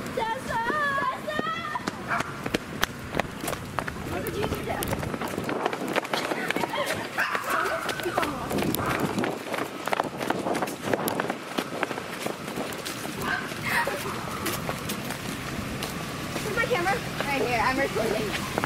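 A young woman calls out loudly close by.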